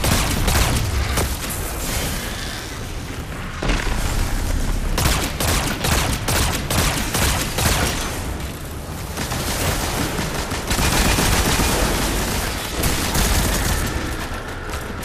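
Gunfire from a game rattles in rapid bursts.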